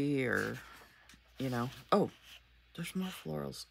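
Paper rustles as a sticker is peeled off a sheet.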